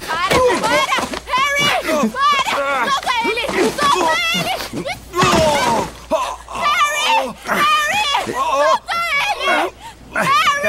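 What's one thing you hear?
A young woman screams and cries in distress close by.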